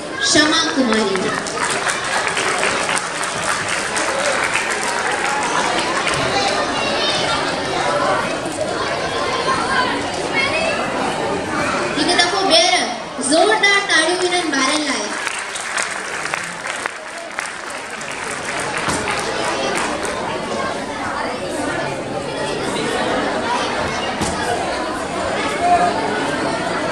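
A woman speaks into a microphone over a loudspeaker in a large echoing hall.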